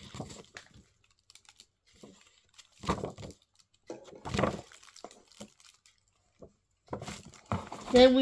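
A paper leaflet rustles in a hand.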